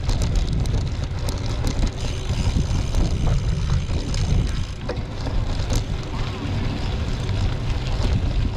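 Tyres rumble and rattle over a bumpy dirt road.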